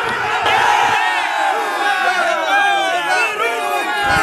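A crowd of men cheers and shouts loudly.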